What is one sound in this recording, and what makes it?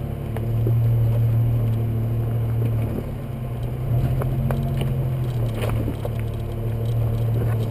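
Tyres crunch over loose rocks.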